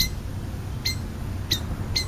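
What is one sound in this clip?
A crow pecks at scraps of food close by.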